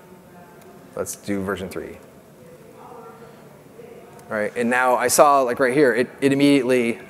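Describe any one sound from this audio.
A man speaks into a microphone, pausing between phrases.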